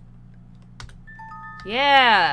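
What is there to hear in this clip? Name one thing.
A short electronic chime plays.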